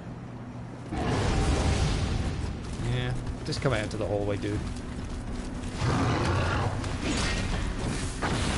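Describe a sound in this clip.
A monster growls and roars close by.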